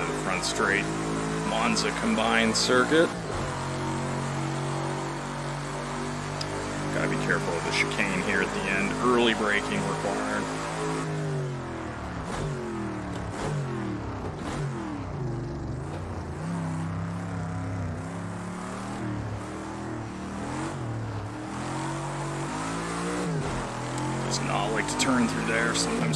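A racing car engine roars steadily, rising and falling in pitch as gears shift.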